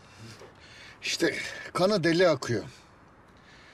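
A second middle-aged man speaks tensely close by.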